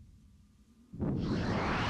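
Wind rushes loudly past as something flies swiftly through the air.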